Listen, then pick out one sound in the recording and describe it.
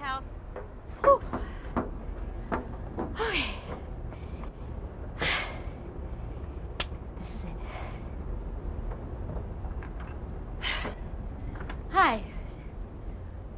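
A woman speaks close by with animated, anxious emotion.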